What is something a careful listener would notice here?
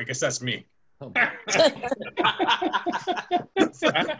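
Several men laugh over an online call.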